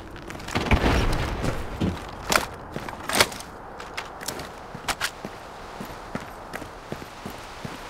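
Footsteps thud and scrape on a roof.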